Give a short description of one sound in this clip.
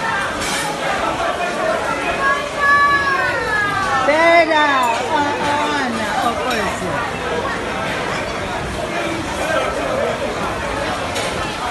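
A crowd of men and women talk and call out at once.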